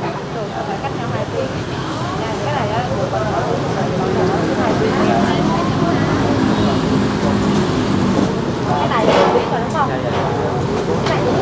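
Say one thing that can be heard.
Several people talk in the background outdoors.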